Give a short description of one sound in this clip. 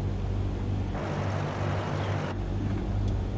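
Wind rushes loudly past a plane in flight.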